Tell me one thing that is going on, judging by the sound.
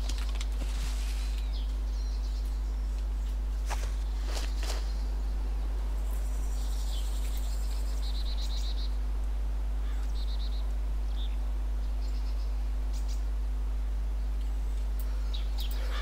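Leaves and undergrowth rustle softly as someone crawls.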